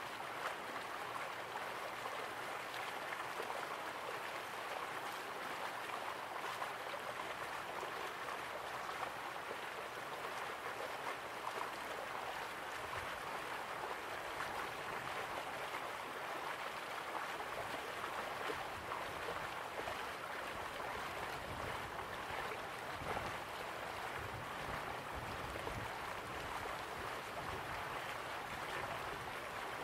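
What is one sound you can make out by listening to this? A small waterfall splashes steadily into a pool.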